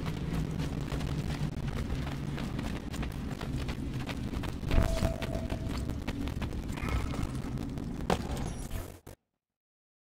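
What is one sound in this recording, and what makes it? Footsteps run quickly on a stone floor, echoing in a vaulted passage.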